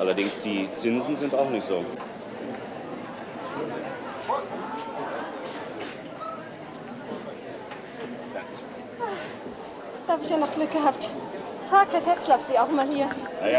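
A crowd murmurs and chatters in a busy room.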